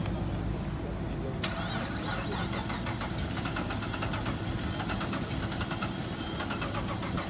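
A car engine idles with a loud, rough rumble.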